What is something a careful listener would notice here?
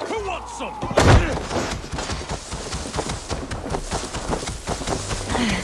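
Blades clash and thud against a wooden shield.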